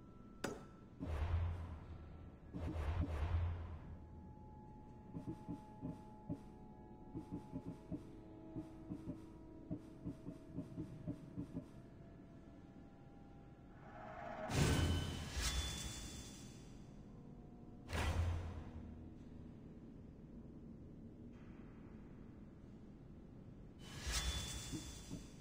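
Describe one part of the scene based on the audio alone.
A deep whoosh swells as a menu opens.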